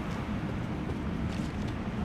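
Footsteps scuff across a stone floor.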